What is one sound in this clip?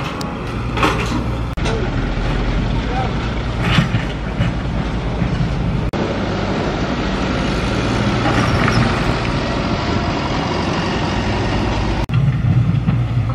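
A small excavator's diesel engine rumbles steadily close by.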